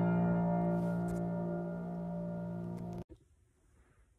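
A piano plays sustained chords that ring out and stop.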